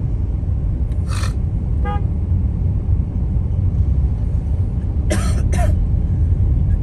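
A vehicle horn honks in short bursts.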